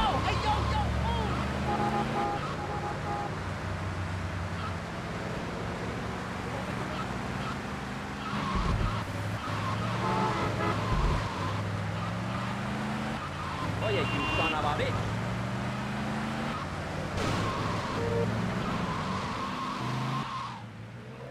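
A car engine revs up and shifts gears repeatedly.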